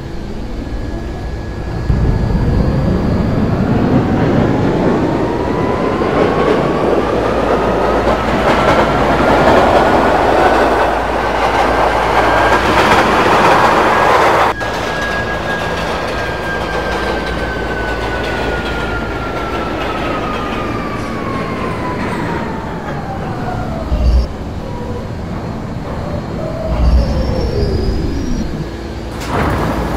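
A subway train rumbles and clatters along the tracks.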